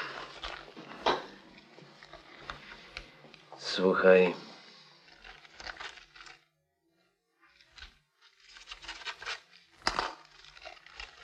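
A man speaks calmly and close by.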